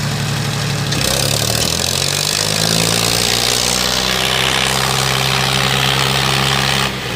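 A tractor engine revs up higher.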